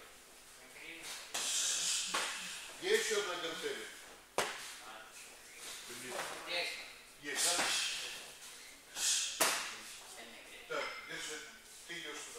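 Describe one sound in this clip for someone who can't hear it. Punches thud against a heavy punching bag.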